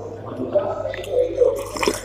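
A man slurps food from a spoon.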